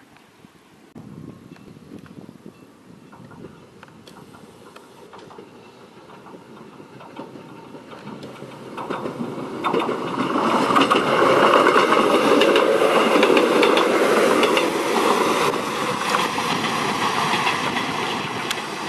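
A train approaches and rumbles past close by, growing steadily louder.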